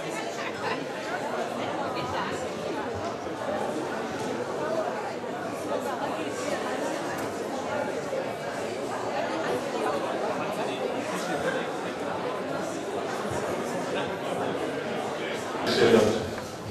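A crowd chatters in a large hall.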